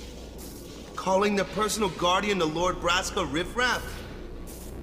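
A man speaks sternly.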